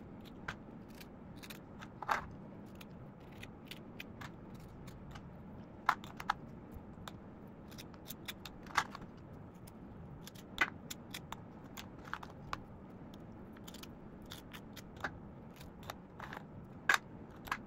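A metal spatula scrapes soft cream filling off cookies.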